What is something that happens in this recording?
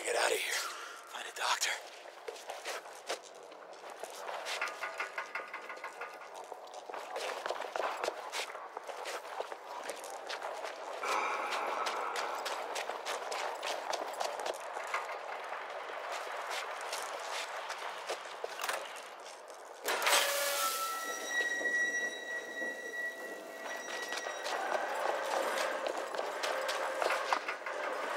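Footsteps tread over a gritty floor.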